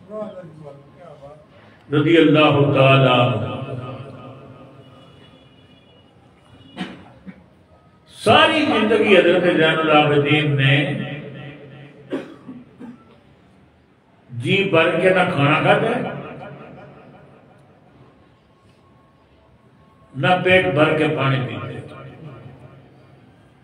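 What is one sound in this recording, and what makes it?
An elderly man speaks loudly into a close microphone in bursts, with a strong echo after each phrase.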